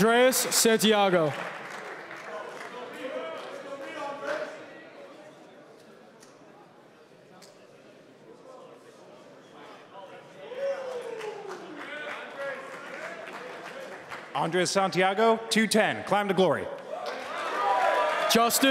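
A crowd of young men cheers and shouts loudly in a large echoing hall.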